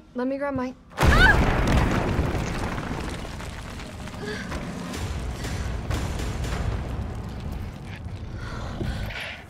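A loud blast erupts, followed by a long rumbling roar.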